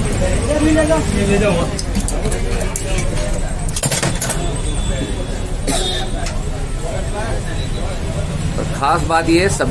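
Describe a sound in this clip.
A metal ladle scrapes and clinks against a steel pot.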